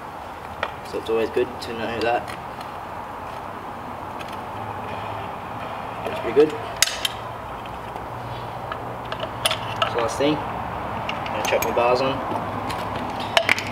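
Metal parts click and clink as a scooter is worked on.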